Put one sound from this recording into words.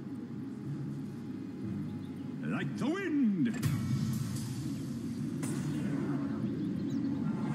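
A magical teleport effect hums and whooshes.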